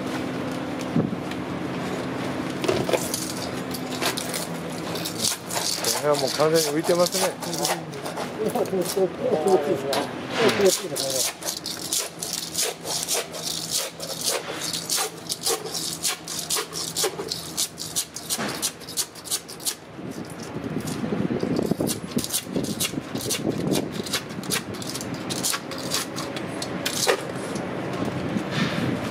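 A scraper scrapes and knocks plaster off a wall.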